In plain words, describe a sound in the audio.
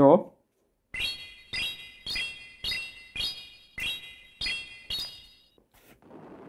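Game chimes ring out in quick, evenly spaced bursts.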